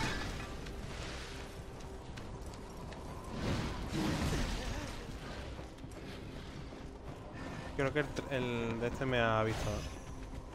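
Blades swish and slash in quick strikes.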